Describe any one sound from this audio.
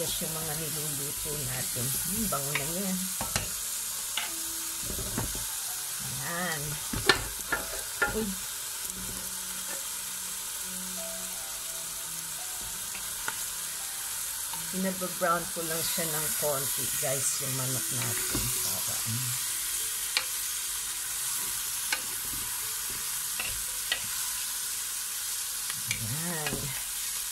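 A wooden spoon knocks and scrapes against a metal pot.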